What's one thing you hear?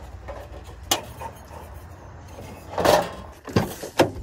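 A metal gas canister clicks and scrapes as it is fitted.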